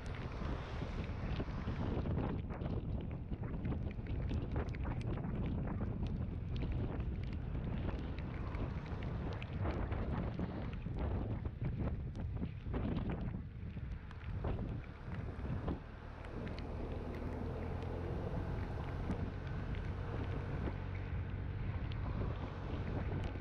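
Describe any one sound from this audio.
Wind buffets loudly against the microphone outdoors.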